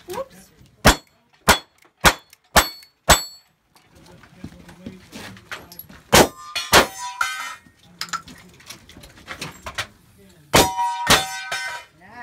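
Gunshots crack loudly in quick succession, ringing off steel targets.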